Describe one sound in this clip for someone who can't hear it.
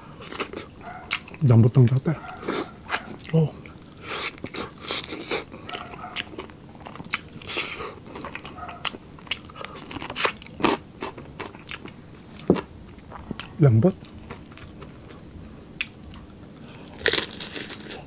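A man bites into crispy fried meat with loud crunches close to a microphone.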